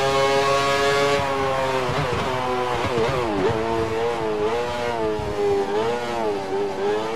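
A racing car engine screams at high revs, then drops in pitch with quick downshifts as it slows.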